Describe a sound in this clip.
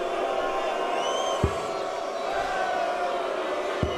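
A dart thuds into a board.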